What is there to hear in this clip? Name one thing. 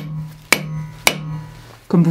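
A metal tool taps sharply against a block of wood.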